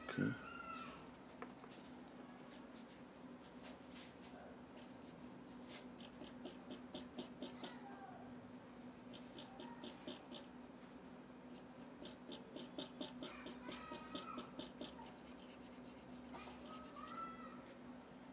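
A pencil scratches and strokes quickly across paper.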